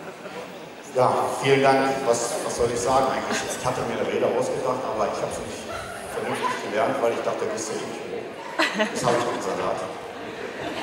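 A man speaks calmly into a microphone over loudspeakers in a large hall.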